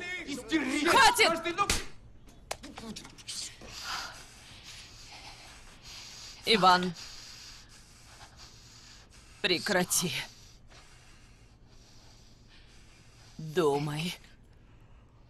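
A woman speaks softly and intensely, close by.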